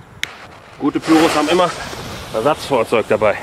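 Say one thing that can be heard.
A lit fuse fizzes and hisses.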